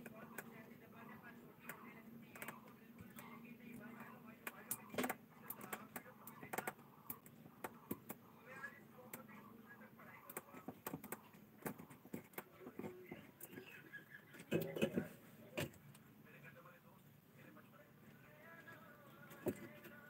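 Small clicks and knocks of handling electronic parts come close by.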